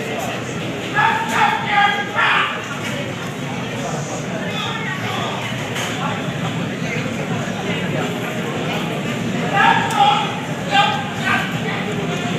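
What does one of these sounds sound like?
A young man shouts loudly in bursts.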